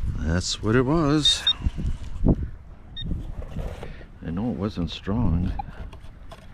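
A metal detector gives warbling, wavering tones up close.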